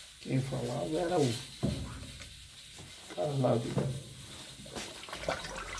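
Fabric rustles softly as clothes are dropped and pushed into a washing machine drum.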